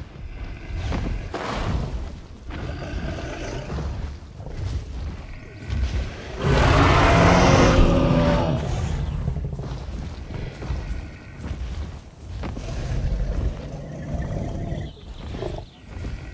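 Heavy footsteps thud slowly on grass.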